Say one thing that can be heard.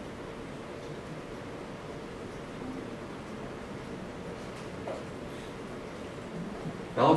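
A young man speaks calmly into a microphone in an echoing room.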